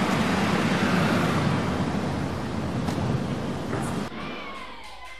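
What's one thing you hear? A car engine rumbles close by as a vehicle passes.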